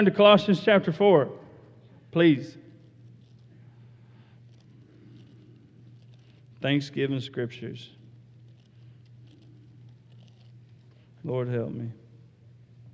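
A middle-aged man speaks slowly through a microphone, with long pauses.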